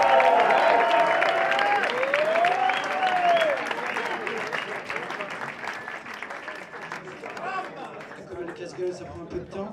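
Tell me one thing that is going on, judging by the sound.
A crowd applauds, with the clapping slowly dying down.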